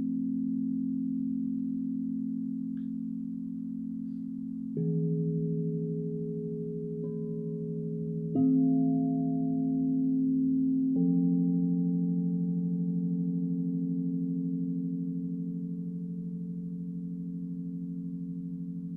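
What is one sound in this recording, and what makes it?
Crystal singing bowls ring with a steady, humming drone.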